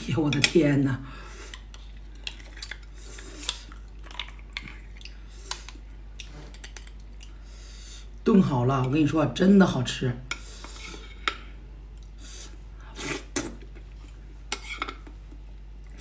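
A metal spoon clinks against a plate.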